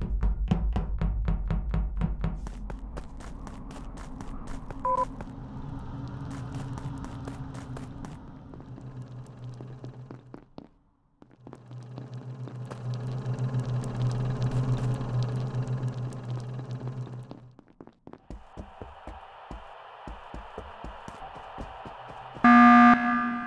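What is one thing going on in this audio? Quick footsteps patter in a video game.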